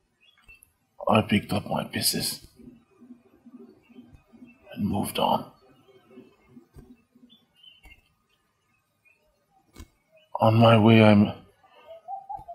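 A man speaks emotionally, close by.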